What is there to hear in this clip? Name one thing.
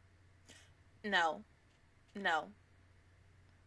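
A young woman makes two short, falling vocal sounds close to a microphone.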